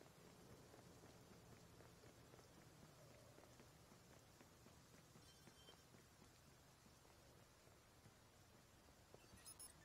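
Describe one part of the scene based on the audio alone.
Footsteps walk on wet pavement.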